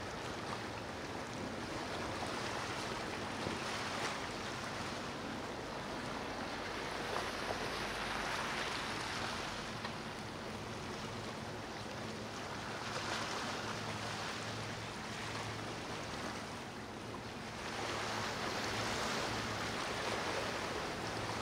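Water rushes and splashes in a yacht's wake.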